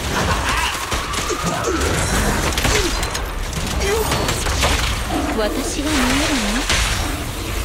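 Energy beams whoosh and crackle.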